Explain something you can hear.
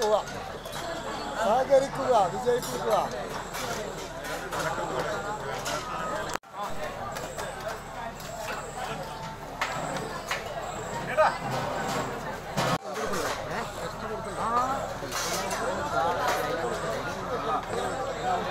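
A crowd of people chatters all around.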